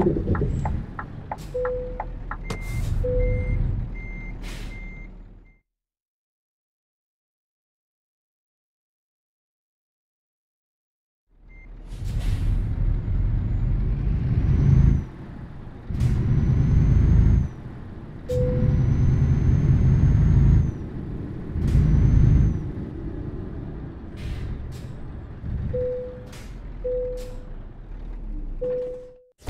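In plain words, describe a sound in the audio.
A truck engine rumbles and revs up in short bursts.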